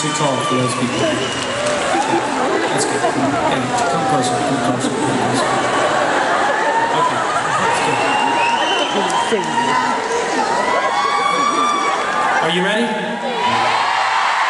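A large crowd cheers and screams loudly in a big echoing arena.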